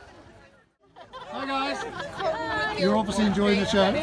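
Women laugh close by.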